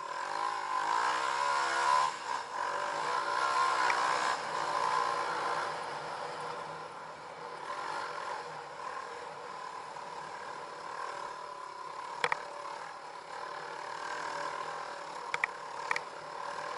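A dirt bike engine revs and drones up close.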